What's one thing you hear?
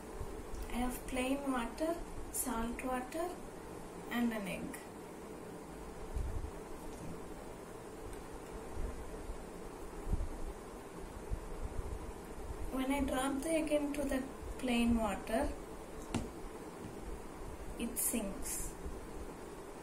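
A young girl speaks calmly close by.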